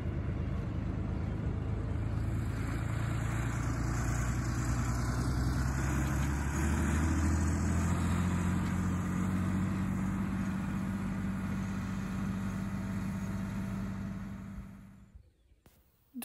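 A tractor engine drones steadily at a distance, then fades away.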